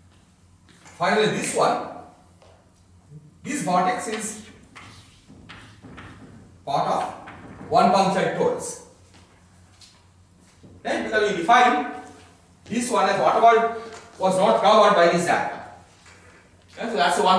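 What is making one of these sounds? A man speaks calmly, explaining, in an echoing room.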